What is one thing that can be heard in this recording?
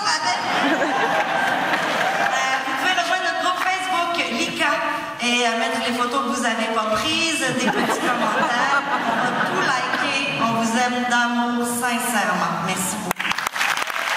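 A young woman speaks with animation into a microphone, heard through loudspeakers in a large hall.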